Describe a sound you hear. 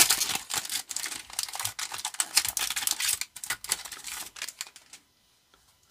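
A foil wrapper crinkles and rustles in someone's hands.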